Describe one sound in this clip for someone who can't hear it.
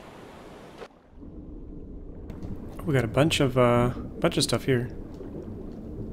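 Water rumbles, muffled, as if heard underwater.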